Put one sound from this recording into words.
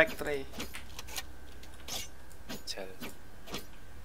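A knife is drawn with a short metallic swish.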